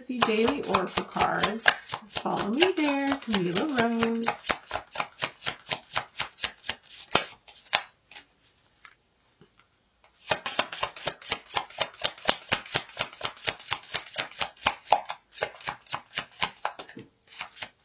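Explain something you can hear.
Playing cards shuffle with rapid, crisp flicking.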